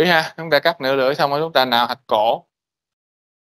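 A man lectures calmly, heard through an online call.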